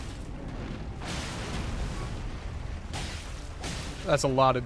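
A huge dragon's body sweeps past with heavy whooshing rushes.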